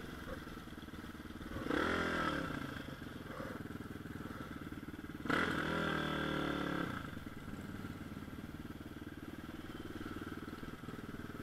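A motorcycle engine idles with a steady putter.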